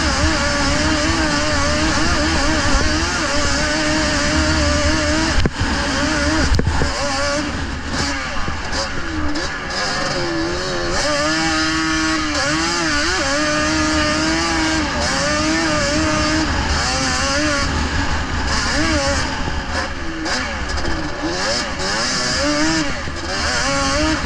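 Tyres churn and spray snow.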